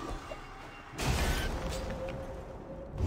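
A magical blast whooshes and rumbles loudly.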